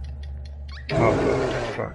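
A polar bear roars loudly.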